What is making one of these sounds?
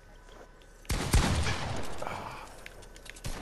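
Rapid gunfire bursts in a video game.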